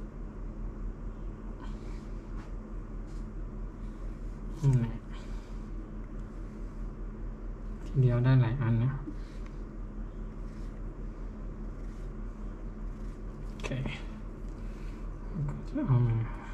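A small blade scrapes against a slice of potato.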